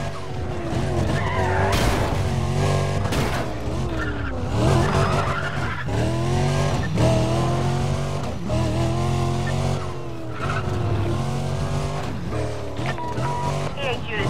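Tyres screech as a car drifts through a corner.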